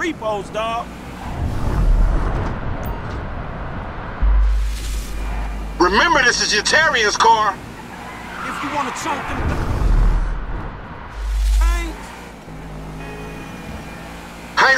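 A sports car engine roars and revs as the car speeds along.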